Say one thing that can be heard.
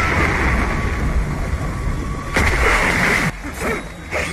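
Water splashes loudly as a body crashes into it.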